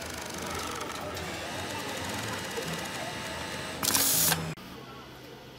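A sewing machine runs, stitching fabric.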